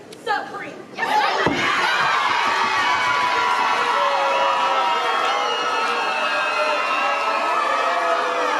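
A crowd cheers and screams loudly in a large hall.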